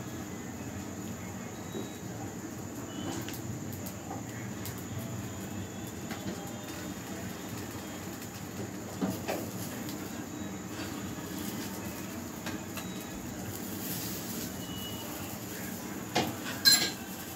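A gas burner hisses steadily.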